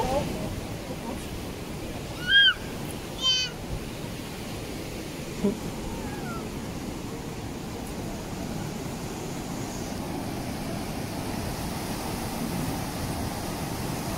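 River water rushes steadily over a weir.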